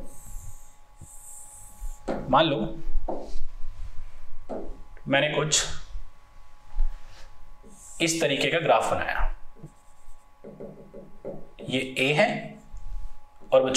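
A marker squeaks on a board.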